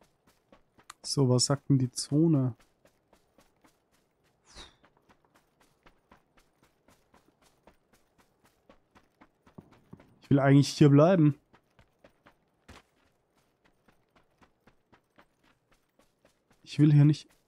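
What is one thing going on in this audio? A man talks into a close microphone with animation, in short bursts.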